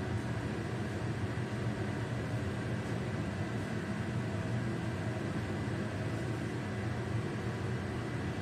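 A gas burner roars steadily under a pot.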